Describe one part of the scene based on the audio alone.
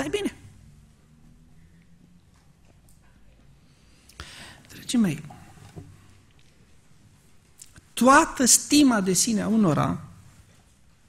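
A man speaks into a microphone in short bursts with long pauses.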